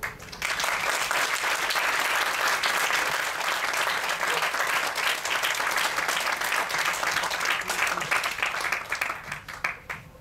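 A drum kit plays a lively beat.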